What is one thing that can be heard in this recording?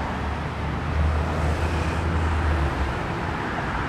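A motorbike engine hums as it passes.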